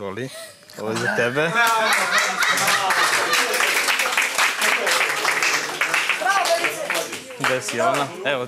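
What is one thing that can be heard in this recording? A crowd claps and cheers in a large room.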